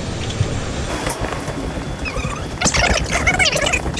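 Footsteps tap along a hollow walkway.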